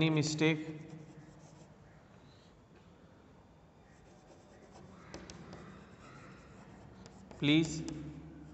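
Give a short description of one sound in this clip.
Chalk scratches and taps on a board.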